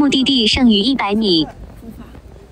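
A young woman speaks close to the microphone.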